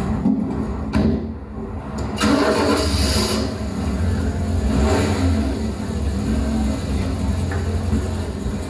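Electronic synthesizer sounds drone and shift.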